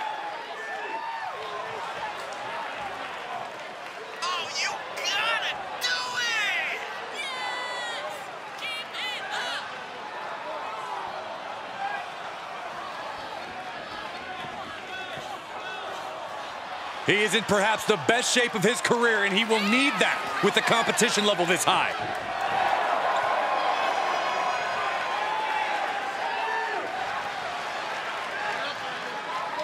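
A large crowd cheers and roars in a big open arena.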